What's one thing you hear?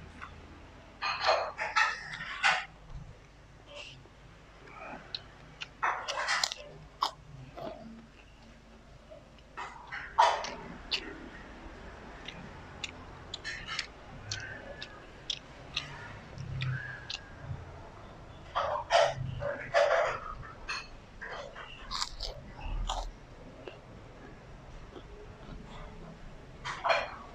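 Fingers squish and pick through sticky rice.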